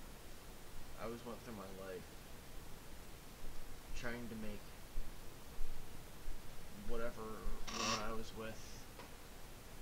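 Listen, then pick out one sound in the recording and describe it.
A young man speaks briefly and quietly into a nearby microphone.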